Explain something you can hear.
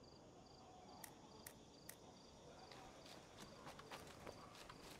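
Footsteps pad softly through grass.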